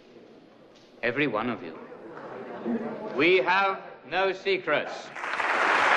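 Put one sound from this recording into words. A man speaks loudly and forcefully in a large hall.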